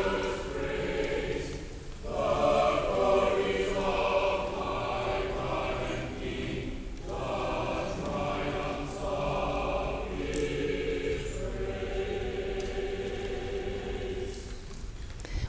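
A mixed choir sings together in a large echoing hall.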